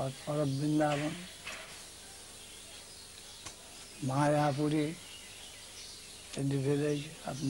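An elderly man speaks calmly in short phrases into a close microphone.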